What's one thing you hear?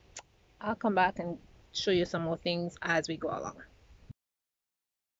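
A young woman speaks close up with animation.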